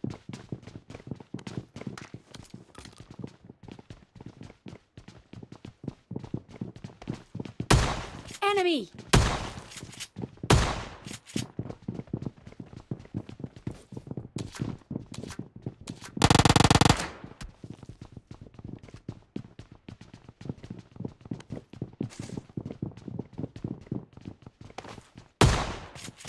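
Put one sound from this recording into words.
Rapid footsteps patter on a hard floor.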